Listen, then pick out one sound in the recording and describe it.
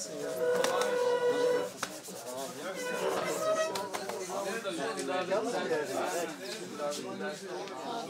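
A crowd of men and women chatters and talks close by.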